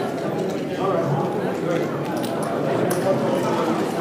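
A checker clicks onto a wooden board.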